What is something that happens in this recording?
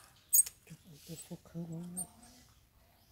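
A baby monkey squeaks softly close by.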